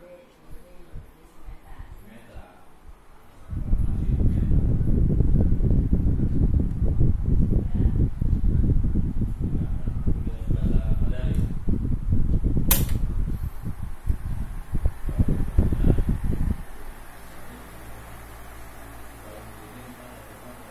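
An electric fan runs with a low whirr.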